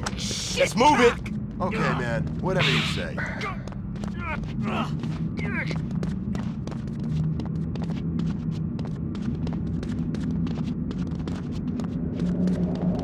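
Footsteps crunch on dirt.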